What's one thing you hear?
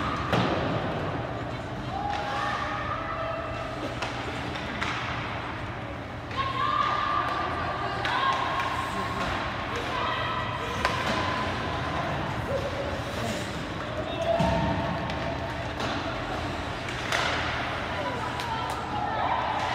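Spectators shout and cheer from the stands.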